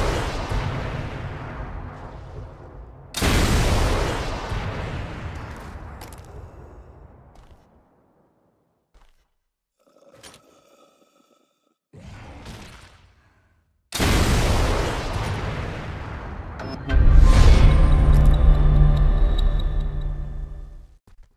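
A heavy rifle fires loud shots that echo and slowly fade.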